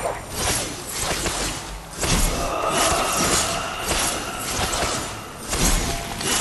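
A magic barrier crackles and hums steadily.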